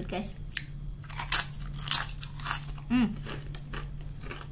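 Crisp chips crunch loudly close to a microphone.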